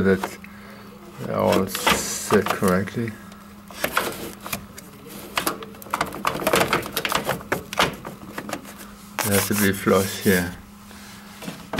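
A cloth rubs and squeaks against plastic parts.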